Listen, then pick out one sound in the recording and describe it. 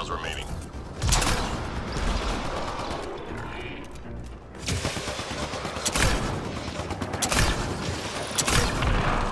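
Guns fire in loud bursts with sharp blasts.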